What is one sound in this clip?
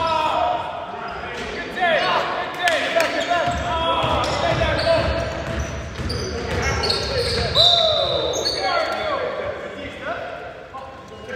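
Sounds echo around a large gym.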